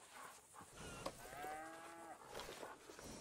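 A horse whinnies softly close by.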